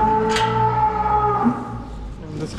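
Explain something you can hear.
Cows moo in a large barn.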